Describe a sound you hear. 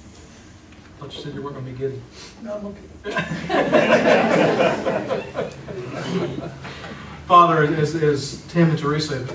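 A middle-aged man speaks calmly, heard through a room microphone.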